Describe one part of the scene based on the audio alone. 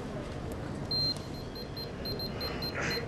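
An electronic apex locator gives rapid high beeps.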